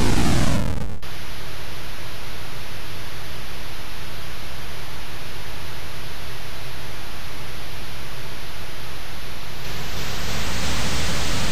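A steady electronic engine hiss drones on.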